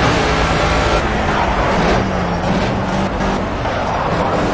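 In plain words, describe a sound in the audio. A racing car engine drops in pitch as the car brakes for a corner.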